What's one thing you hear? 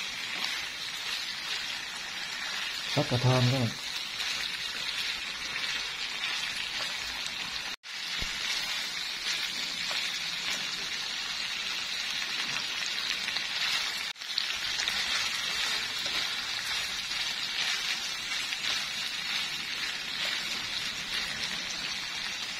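Chopsticks stir pork belly in a frying pan.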